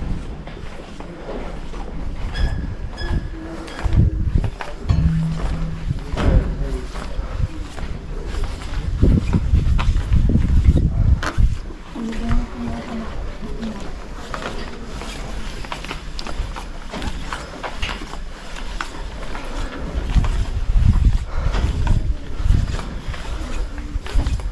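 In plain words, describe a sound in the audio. Footsteps clang on a metal grate walkway.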